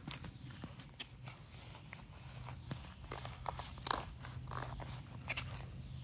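Sandals slap softly on pavement with each step.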